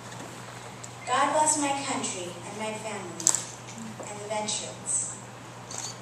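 A young girl speaks into a microphone through a loudspeaker in an echoing room.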